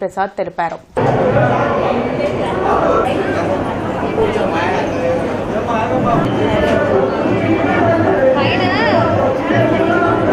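A large crowd murmurs and chatters in a busy echoing space.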